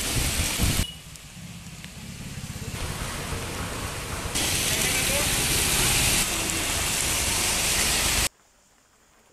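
Heavy rain pours down and splashes on a wet street.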